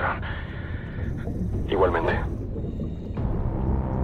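Air bubbles gurgle and rise from divers' helmets underwater.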